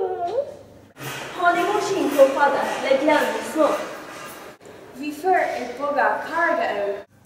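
Teenagers talk to one another in a small group.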